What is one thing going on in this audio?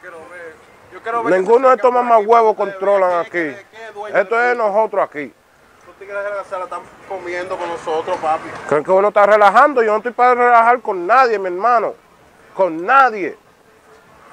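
A young man speaks forcefully and angrily, close by.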